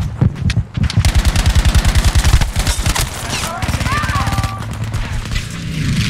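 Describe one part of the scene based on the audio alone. A burst of automatic gunfire rattles rapidly.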